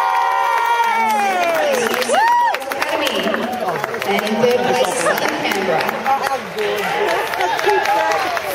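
A crowd of children chatters and calls out in a large echoing hall.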